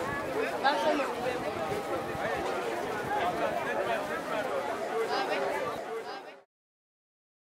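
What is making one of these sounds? A large crowd of men and women chatters and calls out outdoors.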